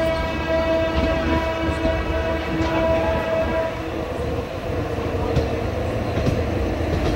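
Train wheels clack over rail joints now and then.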